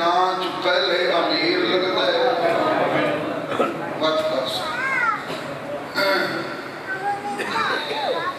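A man speaks passionately into a microphone, his voice carried through loudspeakers.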